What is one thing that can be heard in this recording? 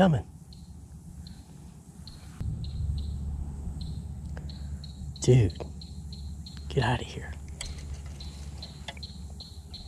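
A fishing reel clicks steadily as line is wound in.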